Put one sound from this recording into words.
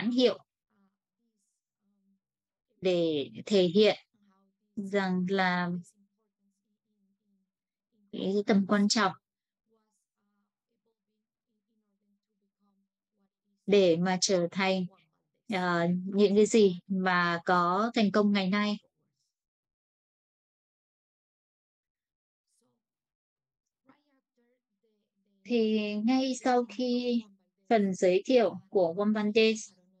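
A young woman speaks calmly through an online call, with long pauses.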